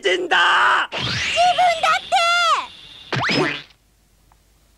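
A young woman shouts angrily.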